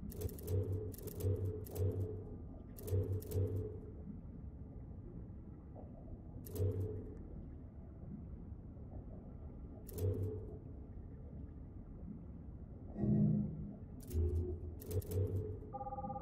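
Game menu clicks tick softly as selections move.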